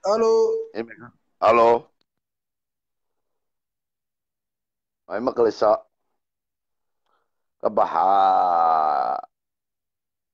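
A middle-aged man speaks in short bursts over an online call, with long pauses.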